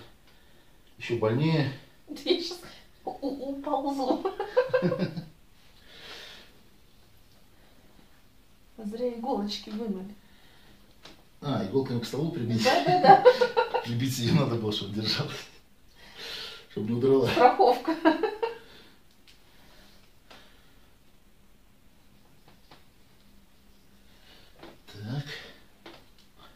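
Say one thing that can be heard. A middle-aged man talks calmly and close by, in short bursts.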